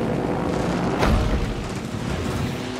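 A bomb explodes with a deep boom.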